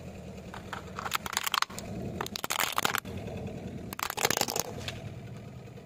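A toy bus crunches and breaks under a rolling tyre.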